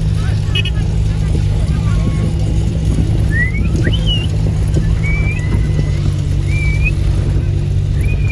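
A motorcycle engine buzzes close by.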